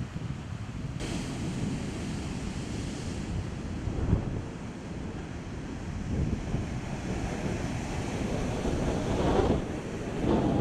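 Waves crash and surge onto a shore.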